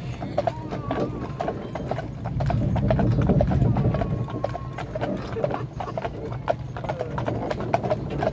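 Horses' hooves clop steadily on a paved road.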